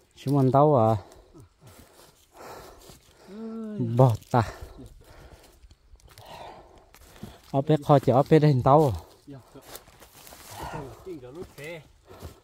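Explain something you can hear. Dry corn stalks crunch and rustle underfoot.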